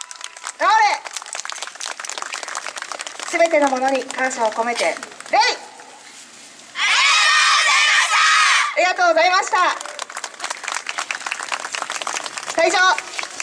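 A group of young women and girls shout in chorus outdoors.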